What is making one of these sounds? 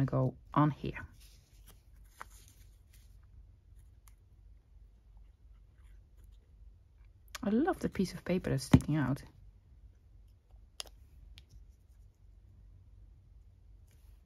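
Paper rustles softly as it is handled.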